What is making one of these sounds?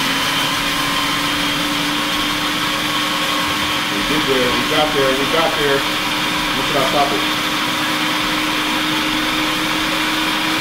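An electric grinder whirs steadily.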